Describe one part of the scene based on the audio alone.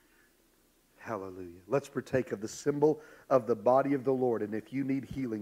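A man speaks through a microphone in a large echoing room.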